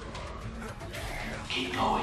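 Hands climb a metal ladder with clanking steps.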